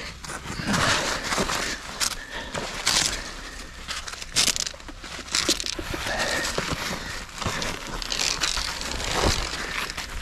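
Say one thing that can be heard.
A rope slides through a metal clip.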